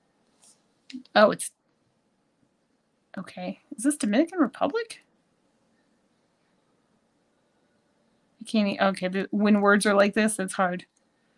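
A woman speaks calmly, close to a microphone, in short bursts.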